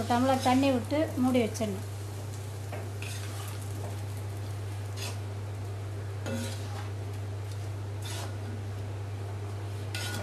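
A metal spatula stirs and scrapes leafy greens in a pan.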